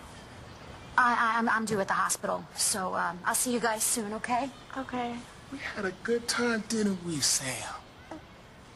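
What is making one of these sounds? A middle-aged woman speaks loudly and with agitation.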